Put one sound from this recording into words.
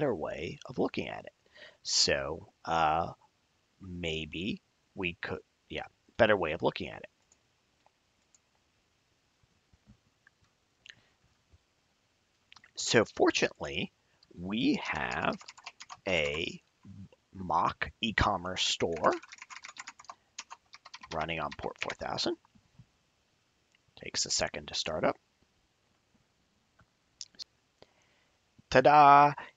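A man talks calmly and closely into a microphone, with pauses.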